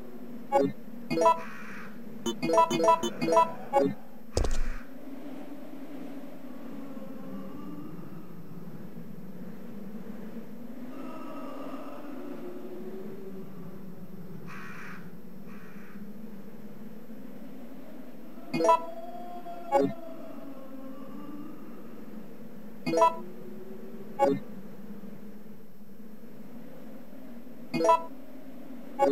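Short electronic menu beeps sound as items are selected.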